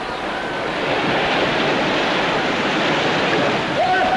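Waves crash and wash across a deck with a loud rush of water.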